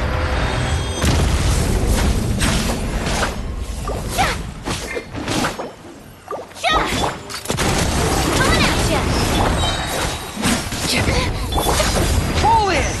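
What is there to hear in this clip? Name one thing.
Fiery magic attacks whoosh and crackle in a game.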